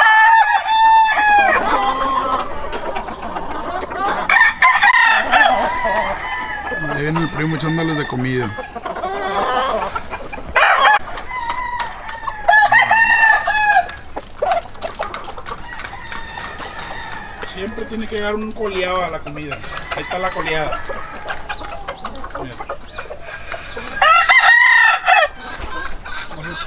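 Roosters crow loudly nearby, one after another.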